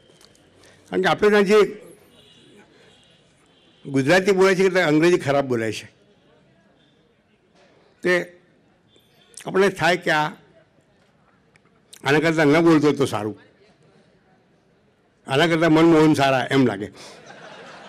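An elderly man speaks slowly into a microphone, in short phrases with pauses.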